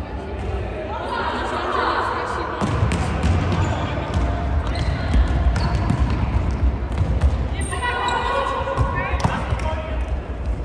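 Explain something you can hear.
Young girls shout to each other across an echoing hall.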